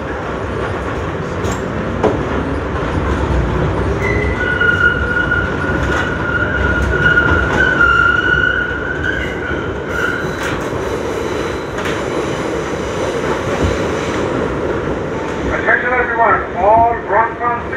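A subway train rumbles and clatters through a station.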